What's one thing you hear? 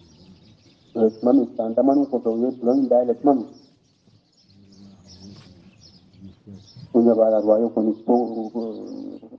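An elderly man chants in a drawn-out, melodic voice.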